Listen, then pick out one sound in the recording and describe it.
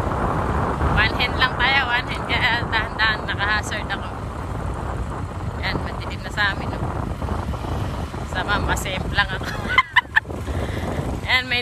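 A woman laughs heartily close to the microphone.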